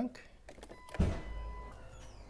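A car trunk latch releases with a dull thump.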